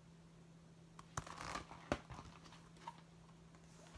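Stiff paper cards rustle and tap as they are handled.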